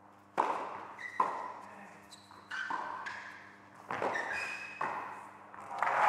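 Rackets strike a tennis ball in sharp, echoing pops.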